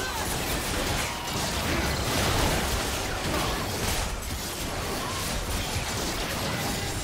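Spell effects crackle and burst in a fast game battle.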